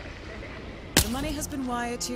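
A silenced pistol fires a shot.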